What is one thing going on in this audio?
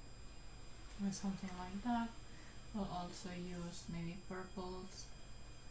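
A young woman talks calmly into a headset microphone.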